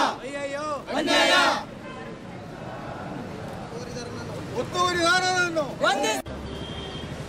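A group of men shout slogans together outdoors.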